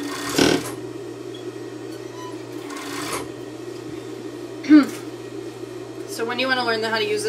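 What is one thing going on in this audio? A sewing machine motor hums steadily.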